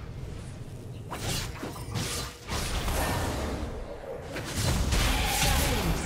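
Magic ability effects whoosh and burst in a fantasy battle game.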